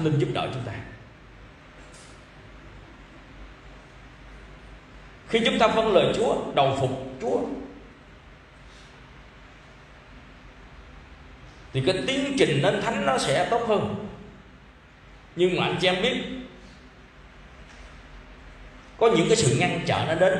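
A middle-aged man speaks calmly into a microphone in bursts, pausing between phrases.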